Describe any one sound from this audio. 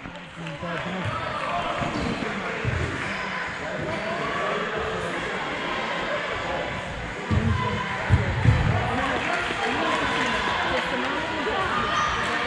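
Young men shout and call out in a large echoing indoor hall.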